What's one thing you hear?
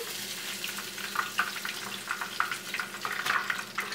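A spoon scrapes and taps in a bowl of flour.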